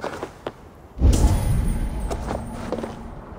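A heavy chest opens with a loud, deep rumble.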